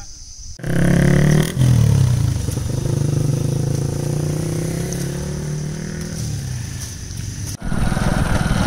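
A motorbike engine hums as the bike rides away along a dirt road.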